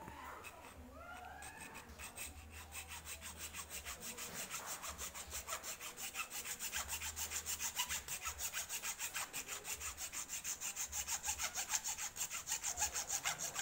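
A metal file rasps rapidly back and forth over metal, growing louder.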